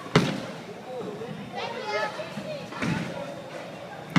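A bowling ball rolls slowly down a wooden lane.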